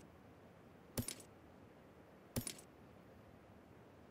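Short interface clicks sound as menu options are tapped.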